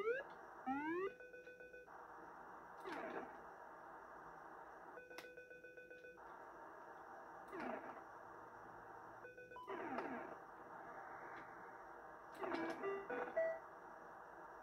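Video game beeps and chimes sound in short bursts.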